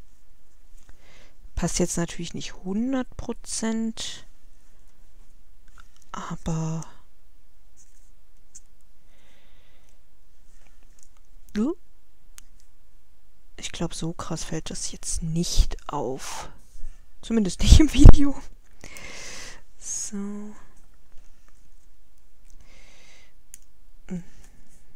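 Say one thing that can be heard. Paper rustles and slides against a hard surface.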